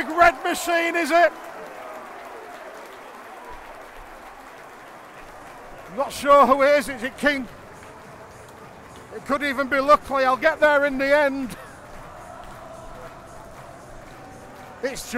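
A large crowd cheers loudly outdoors.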